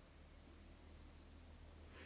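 Paper peels away with a soft tearing rustle.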